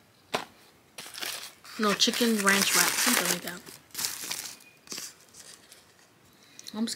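Foil wrapping crinkles and rustles.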